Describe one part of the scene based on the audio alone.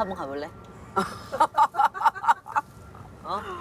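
An elderly woman laughs heartily.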